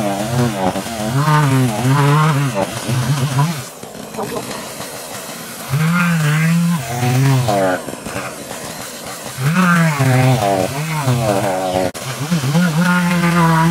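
A chainsaw engine idles close by.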